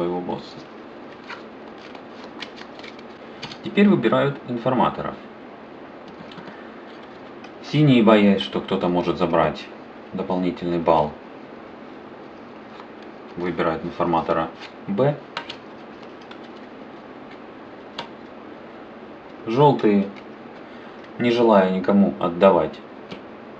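Cards are laid down and slid across a table.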